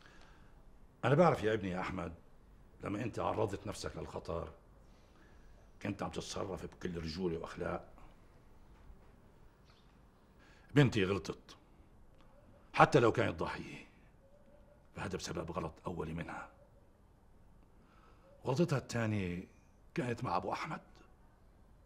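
A middle-aged man speaks calmly and deliberately, close by, with pauses between phrases.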